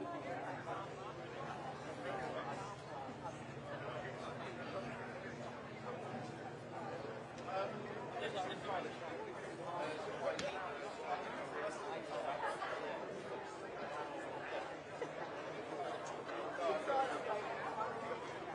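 A large audience chatters in a big echoing hall.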